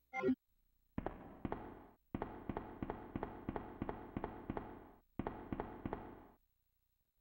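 Footsteps echo steadily along a hard corridor.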